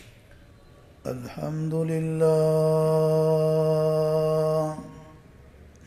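A man chants a long, steady, drawn-out note through a microphone.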